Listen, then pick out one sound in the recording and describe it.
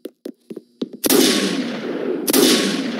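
A loud burst of automatic gunfire roars.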